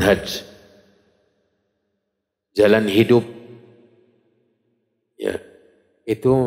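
A man speaks calmly into a microphone in an echoing hall, in short bursts with pauses.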